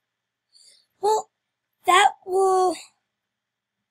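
A young boy speaks briefly, close to the microphone.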